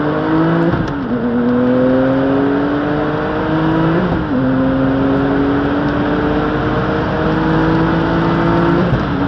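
A car engine roars loudly from inside the cabin, revving up through the gears with brief drops at each shift.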